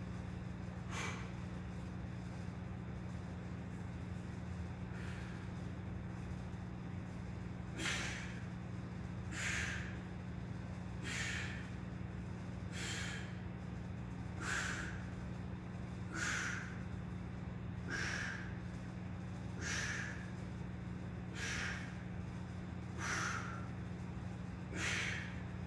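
A man breathes out hard in short, regular puffs as he does pull-ups.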